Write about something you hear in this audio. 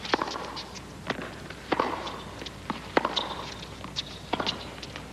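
A tennis ball is struck back and forth with sharp pops of the racket, in a large echoing arena.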